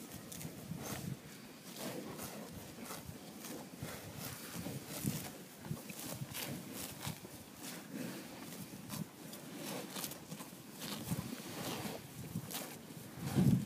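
Cows tear and munch grass close by with steady rhythmic ripping.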